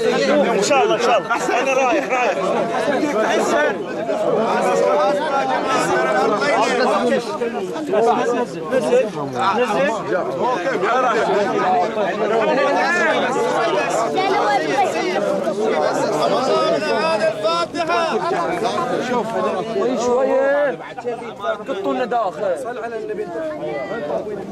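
A crowd of men talks and calls out all around, close by.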